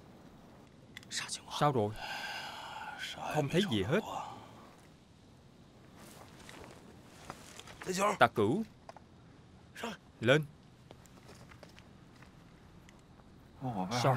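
A man speaks in a low, urgent voice close by.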